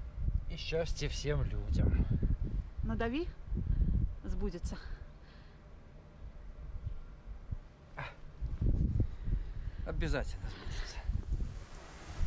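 An elderly man speaks close by, calmly and a little breathlessly.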